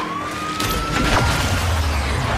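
A car slams into another car with a loud crunch.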